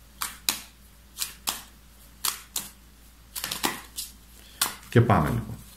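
Playing cards are shuffled with soft, quick riffling snaps.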